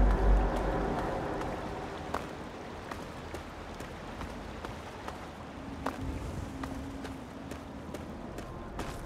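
Footsteps tread steadily over rocky ground.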